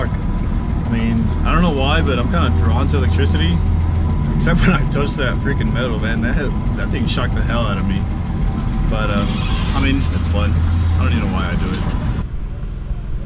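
A young man talks casually and close to a microphone.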